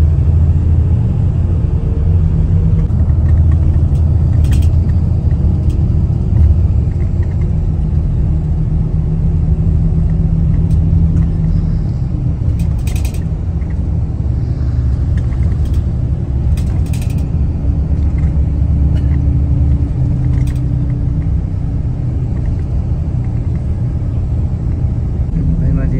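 A car's engine and tyres rumble steadily from inside the car on a highway.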